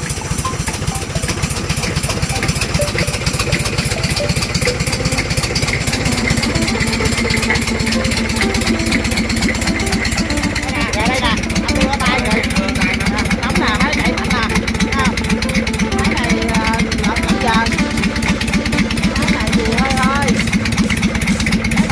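A diesel engine idles loudly with a steady, rapid clatter.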